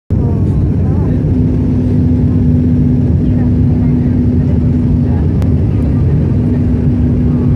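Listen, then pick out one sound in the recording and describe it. An airplane engine drones loudly and steadily inside the cabin.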